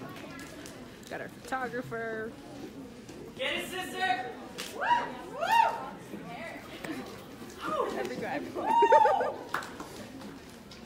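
A young woman speaks through a microphone and loudspeaker in a large echoing hall.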